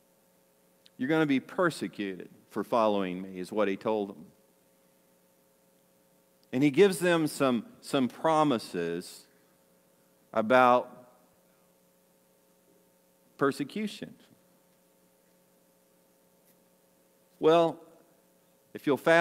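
An older man speaks with animation through a microphone.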